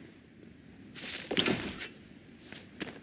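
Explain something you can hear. A plant rustles as it is pulled up.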